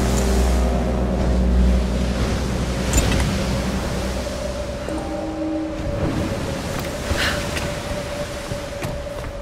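Wind and rough sea roar steadily outdoors.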